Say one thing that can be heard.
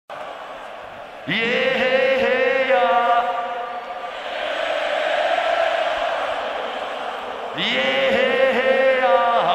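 A large crowd cheers and roars in a huge echoing arena.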